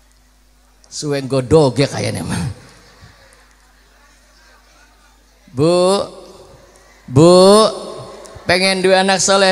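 A young man sings into a microphone through loudspeakers in short, drawn-out phrases with pauses between them.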